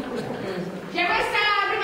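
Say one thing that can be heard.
A woman answers in a raised, animated voice.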